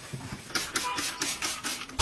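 A spray bottle hisses.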